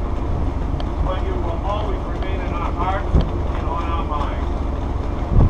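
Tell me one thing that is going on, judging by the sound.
A man speaks out loud to a group, heard from a distance.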